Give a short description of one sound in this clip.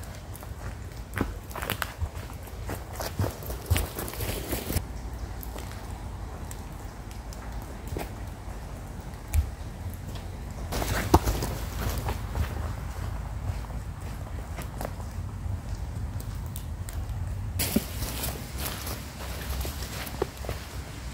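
Footsteps crunch on dry leaves and earth.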